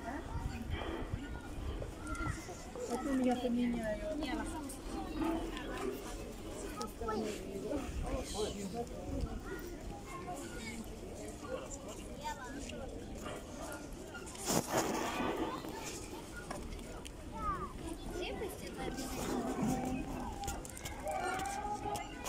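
A crowd of people talks and murmurs outdoors.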